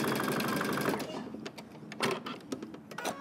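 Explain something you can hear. A sewing machine's buttons click.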